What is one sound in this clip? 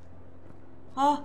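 A young woman exclaims briefly and loudly, close to a microphone.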